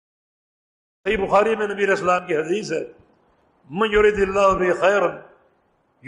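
A man speaks calmly and clearly, close to a microphone.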